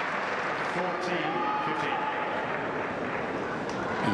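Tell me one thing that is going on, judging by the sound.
A tennis racket strikes a ball.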